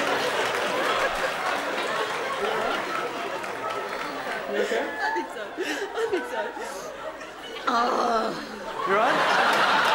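A woman sobs and speaks tearfully into a microphone.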